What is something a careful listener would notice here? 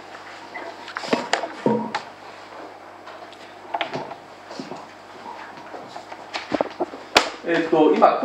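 A microphone thumps and knocks as it is handled.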